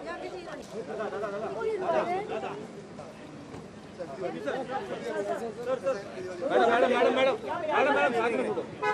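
Men talk and call out loudly close by.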